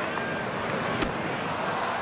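A pitched baseball smacks into a catcher's glove.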